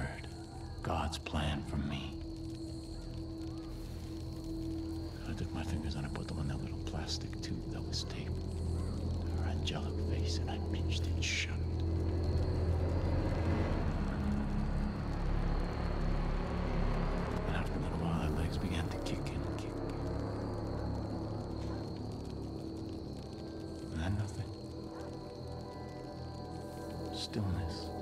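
A man speaks in a low, menacing voice.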